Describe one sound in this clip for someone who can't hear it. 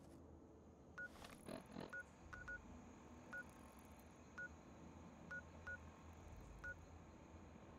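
Short electronic beeps sound as a handheld device's map is scrolled.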